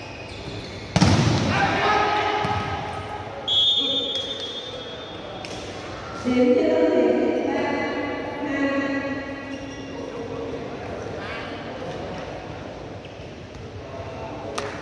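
Young men shout and cheer in an echoing indoor hall.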